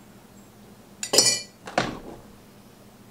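A glass coffee pot clatters as it is lifted from a coffee maker.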